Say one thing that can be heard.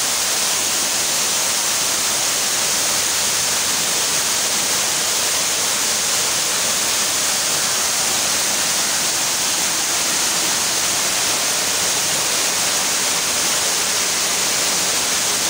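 A waterfall splashes and roars loudly nearby.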